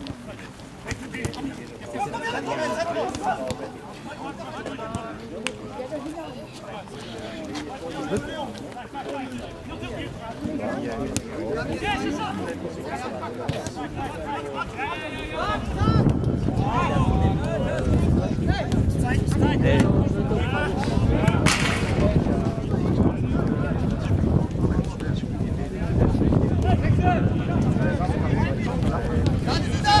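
Men shout and call out to each other across an open field.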